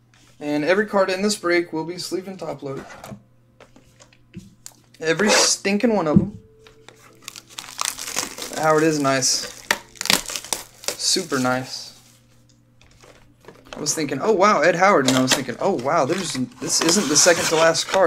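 A small cardboard box is pried open, its flaps rustling and tearing.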